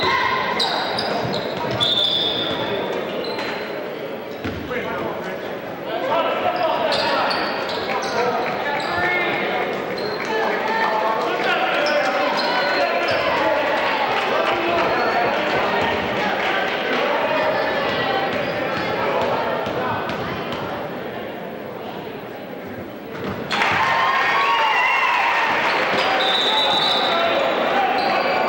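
A crowd murmurs and calls out throughout a large echoing gym.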